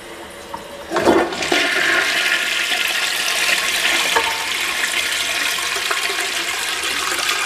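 A toilet flushes with rushing, gurgling water.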